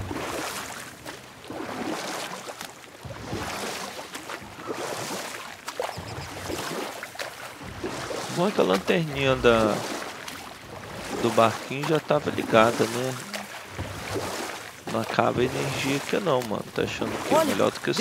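Oars splash softly through water.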